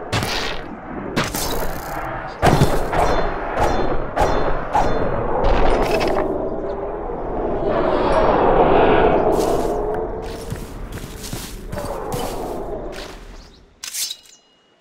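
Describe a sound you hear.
Monsters growl and snarl loudly.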